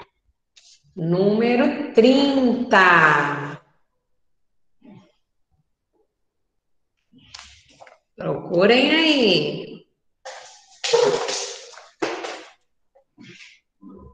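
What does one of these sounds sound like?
A young woman speaks calmly and clearly into a nearby microphone.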